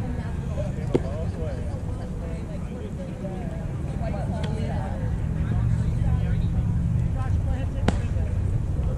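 A baseball smacks into a leather glove.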